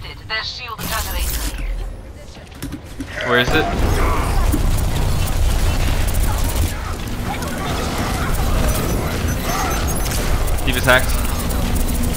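Video game gunfire rattles in rapid bursts.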